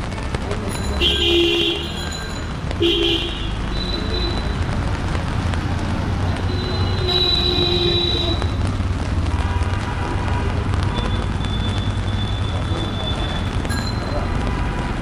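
Vehicle horns honk now and then nearby.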